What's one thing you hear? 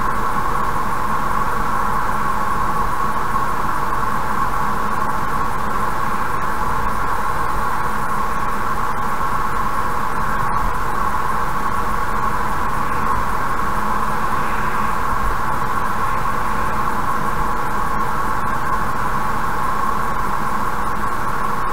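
A car engine and tyres hum steadily on a highway.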